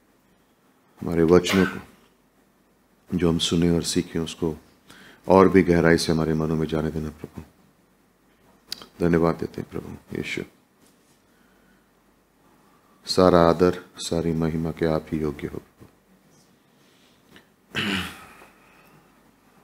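A man speaks slowly and deliberately into a microphone, with pauses between phrases.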